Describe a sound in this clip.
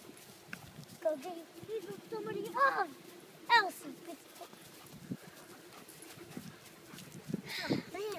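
A young boy squeals and shouts playfully nearby.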